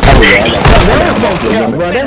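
A submachine gun fires a rapid burst.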